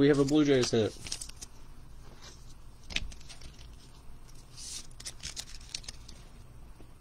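A plastic sleeve crinkles as a card is slid out of it by hand.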